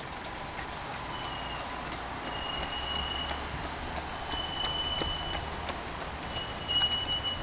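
Running shoes patter on a paved path.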